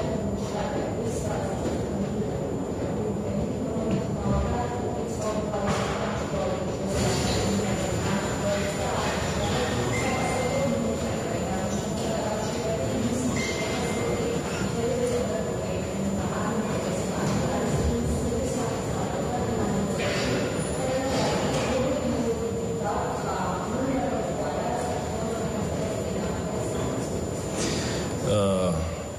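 A middle-aged man speaks calmly and steadily into a microphone.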